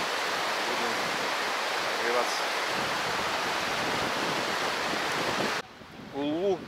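A mountain stream rushes loudly over rocks.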